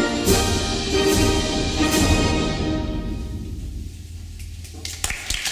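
A concert band plays a final chord that rings out and fades in a large hall.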